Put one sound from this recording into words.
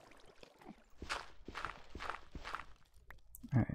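A shovel digs into dirt with crunching scrapes.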